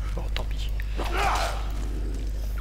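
A monster growls harshly close by.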